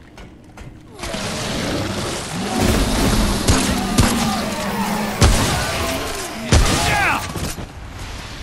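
Creatures shriek and snarl.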